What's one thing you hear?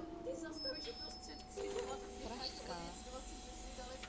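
Bus doors hiss and clatter open.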